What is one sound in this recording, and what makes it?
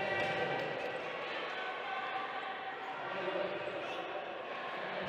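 Wheelchair wheels squeak on a wooden court.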